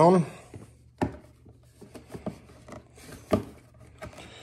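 Plastic parts click and knock as hands handle them.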